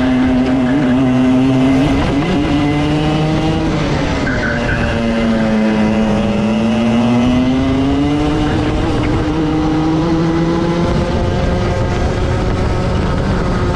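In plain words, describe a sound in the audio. A kart engine buzzes loudly close by, its pitch rising and falling with speed.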